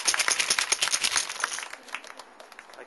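A crowd claps and cheers outdoors, then quickly dies down.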